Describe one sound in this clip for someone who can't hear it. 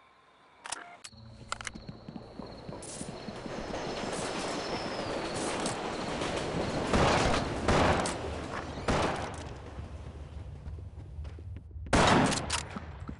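Footsteps thud steadily across a hard floor.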